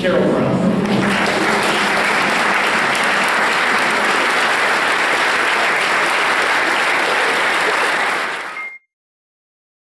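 A crowd applauds loudly and steadily, then stops.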